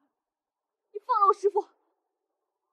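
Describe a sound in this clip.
A young woman cries out in alarm, close by.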